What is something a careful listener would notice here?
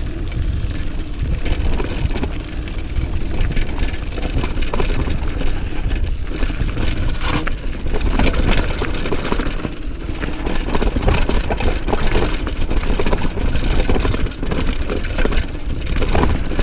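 Mountain bike tyres crunch and rattle over a rocky dirt trail downhill.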